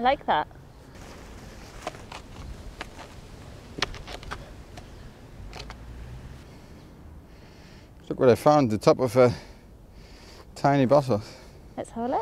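A spade digs into soil.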